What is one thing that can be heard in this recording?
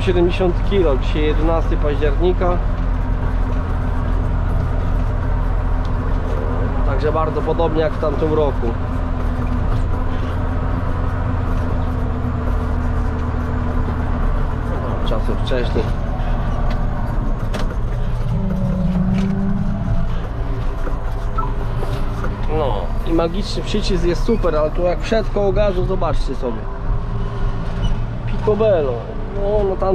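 A young man talks close by, over the engine.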